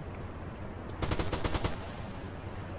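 A shotgun fires in a quick burst of loud blasts.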